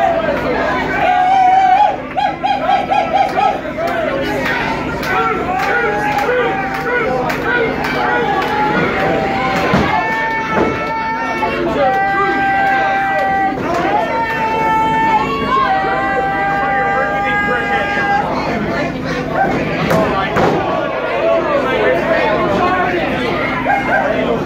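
A crowd chants and cheers loudly in an echoing hall.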